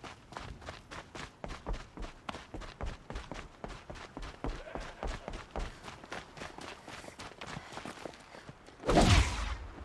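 Quick footsteps run across wooden planks and then over crunchy snowy ground.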